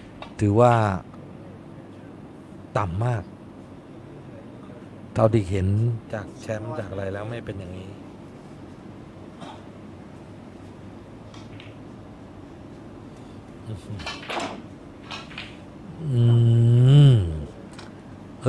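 Balls knock together with a crisp clack.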